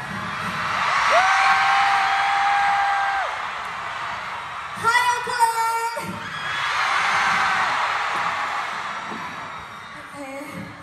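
A young woman speaks through loudspeakers with animation.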